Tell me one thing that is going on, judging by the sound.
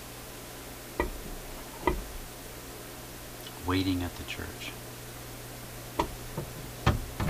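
A shellac record knocks and clatters against a phonograph turntable.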